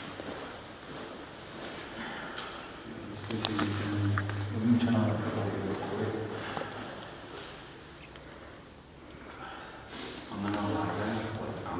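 A young man speaks calmly and closely in a small echoing room.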